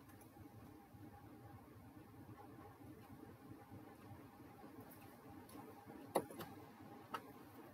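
A glue bottle squeezes and taps against paper.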